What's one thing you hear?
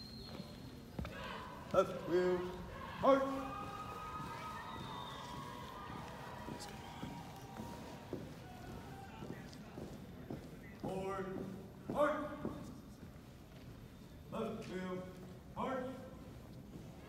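A young man shouts drill commands in a large echoing hall.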